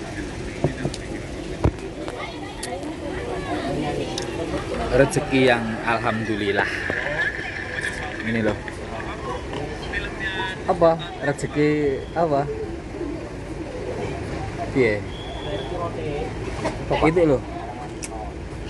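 A young man talks casually close to a phone microphone.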